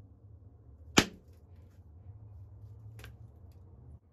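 An antler billet knocks sharply against a stone.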